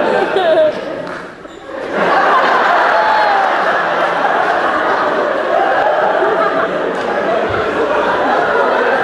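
A man speaks loudly and clearly in a large echoing hall.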